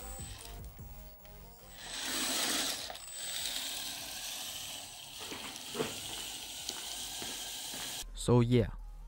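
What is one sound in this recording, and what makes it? A small electric motor whirs as a toy car drives across a hard floor.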